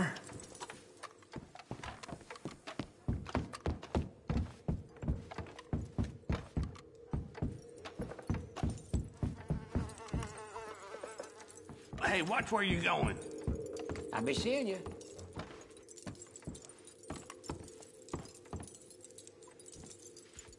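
Boots thud steadily on wooden floorboards.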